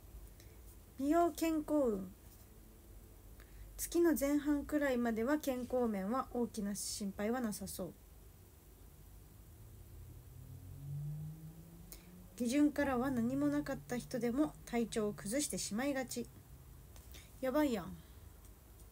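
A young woman speaks softly close to a microphone, in short bursts.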